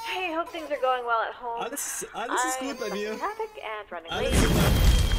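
A young man laughs out loud.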